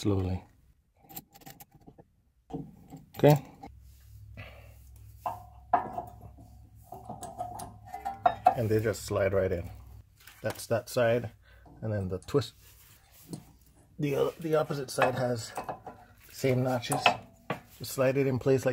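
Metal parts clink and scrape as a brake pad is handled and fitted.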